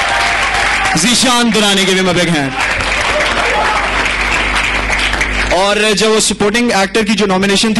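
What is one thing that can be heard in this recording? A young man sings loudly through a microphone.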